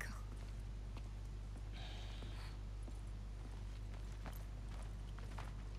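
Footsteps crunch softly on snow.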